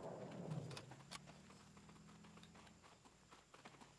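A rifle bolt clicks as it is reloaded.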